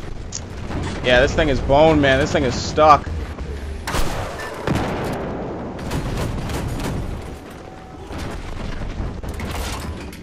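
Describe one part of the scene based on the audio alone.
A cannon fires in sharp bursts.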